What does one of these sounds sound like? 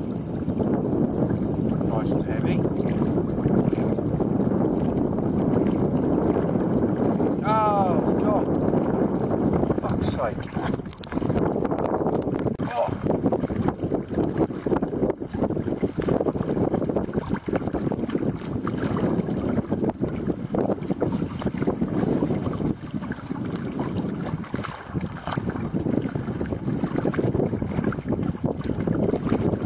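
A fishing reel clicks and whirs as a man winds in line.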